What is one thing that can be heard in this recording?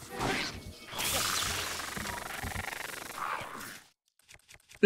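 An electric crackle bursts loudly.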